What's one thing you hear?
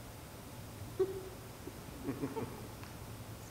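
A young woman speaks briefly and softly.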